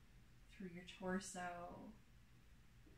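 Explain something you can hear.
A woman speaks softly and calmly nearby.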